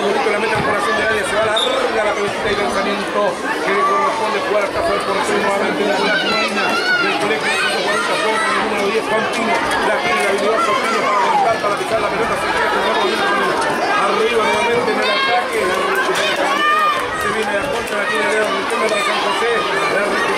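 A crowd of children shouts and cheers excitedly outdoors.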